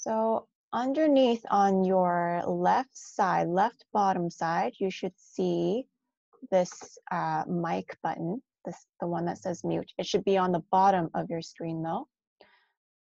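A young woman talks calmly and clearly into a close microphone.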